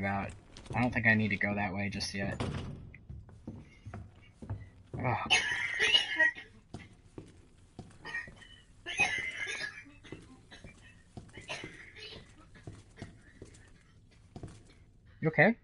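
Slow footsteps tread on a hard floor.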